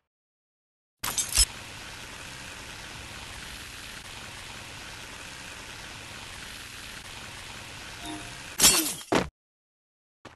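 A cable pulley whirs steadily along a line.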